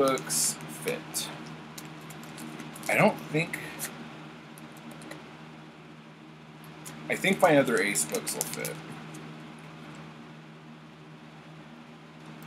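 A plastic wrapper crinkles in a man's hands.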